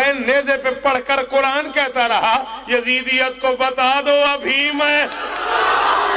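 A man speaks forcefully through a microphone, heard over loudspeakers.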